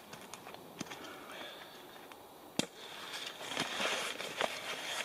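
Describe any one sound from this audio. Fabric of a backpack rustles under handling.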